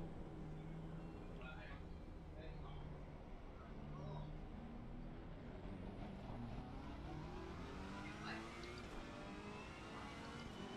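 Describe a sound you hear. A racing car engine drones and revs higher as the car speeds up.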